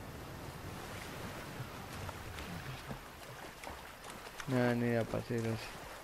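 A figure splashes while swimming through water.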